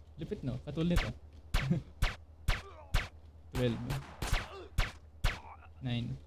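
A silenced pistol fires several sharp shots.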